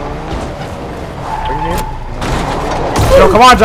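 A car crashes and clatters onto wooden planks.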